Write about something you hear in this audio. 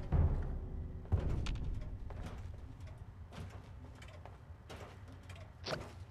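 Footsteps thud and creak on a wooden floor.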